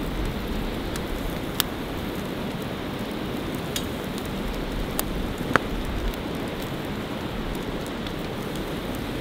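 A small fire crackles and pops.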